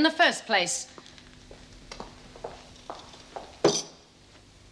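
Footsteps thud on a hard floor indoors.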